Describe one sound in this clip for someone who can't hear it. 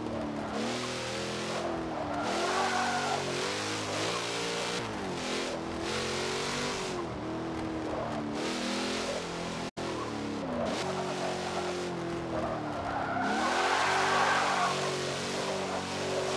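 Tyres screech on tarmac in long slides.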